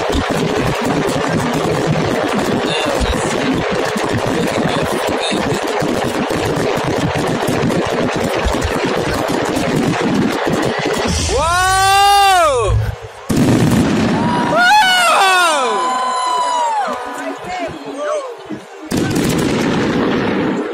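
Fireworks crackle and pop rapidly overhead.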